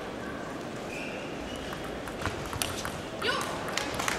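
A ping-pong ball clicks back and forth off paddles and a table.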